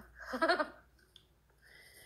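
A young woman laughs softly over an online call.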